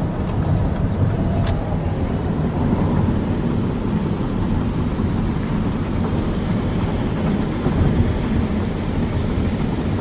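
A car's engine hums steadily.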